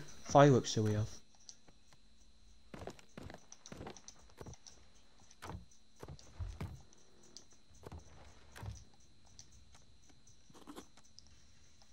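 Soft menu clicks tick one after another.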